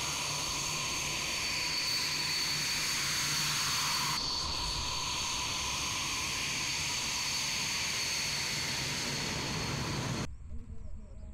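A jet engine whines and roars loudly up close.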